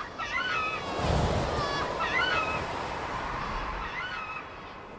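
Wind gusts strongly outdoors.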